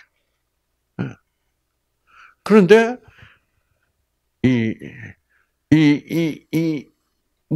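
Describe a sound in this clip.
An elderly man speaks into a microphone in short, emphatic bursts with pauses between them.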